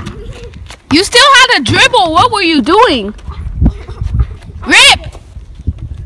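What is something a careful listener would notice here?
A boy shouts excitedly outdoors.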